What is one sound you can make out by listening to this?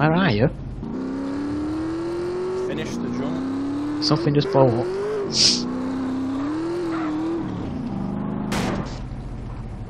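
A buggy engine hums and revs up repeatedly.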